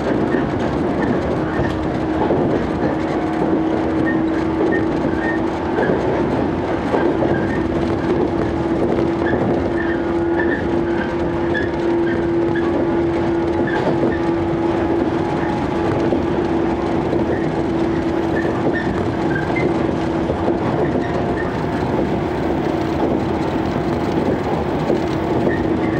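A train's motor hums with a steady drone.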